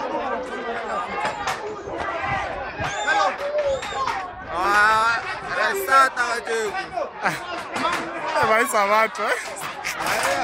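A crowd of men shout and call out excitedly nearby, outdoors.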